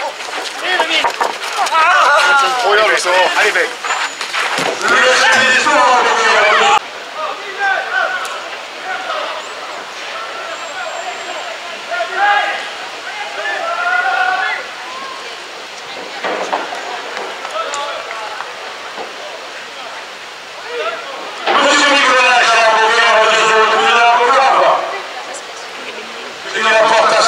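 A large crowd murmurs and calls out outdoors.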